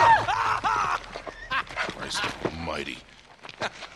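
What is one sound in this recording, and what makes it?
A middle-aged man exclaims in shock.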